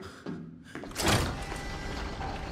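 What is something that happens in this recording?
A heavy door bangs open.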